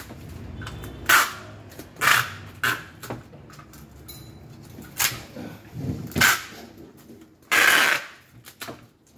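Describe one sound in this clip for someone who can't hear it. Packing tape screeches as it is pulled off the roll in loud bursts.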